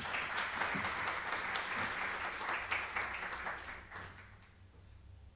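An audience applauds in a large hall and the applause fades out.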